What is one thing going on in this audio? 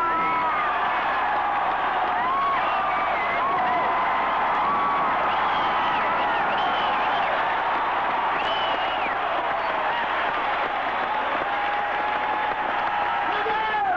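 A large crowd cheers and roars loudly in a big echoing hall.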